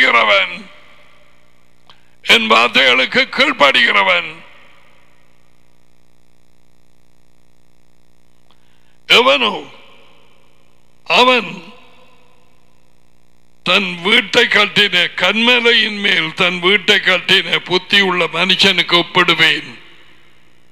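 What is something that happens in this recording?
An elderly man speaks calmly into a headset microphone, close by, with pauses.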